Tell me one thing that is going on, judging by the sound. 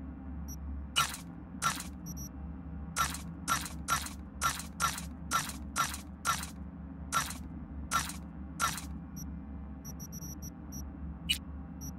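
Short sharp menu clicks sound one after another.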